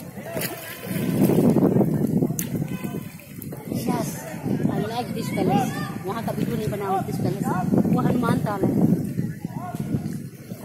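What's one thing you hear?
A paddle splashes through water in steady strokes.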